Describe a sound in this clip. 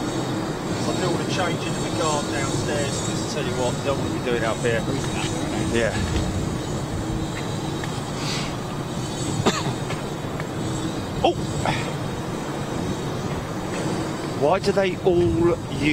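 A large jet's engines whine and rumble steadily as the plane taxis slowly nearby.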